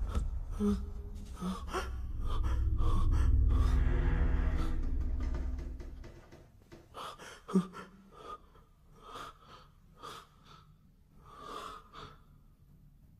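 A man pants and gasps heavily close by.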